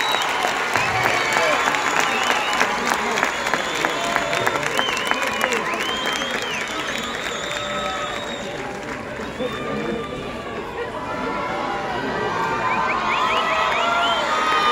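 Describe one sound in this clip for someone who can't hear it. A large crowd cheers and screams outdoors.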